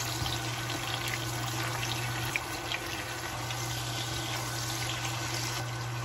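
A spatula scrapes and stirs in a pan.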